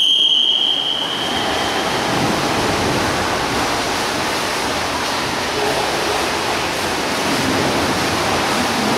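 Swimmers splash steadily through the water.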